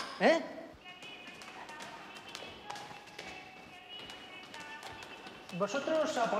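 Footsteps tap on stone stairs in an echoing hall.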